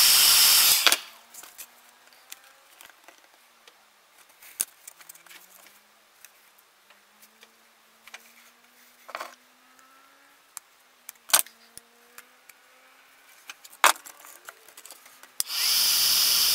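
Hands handle a thin strip with light taps and knocks.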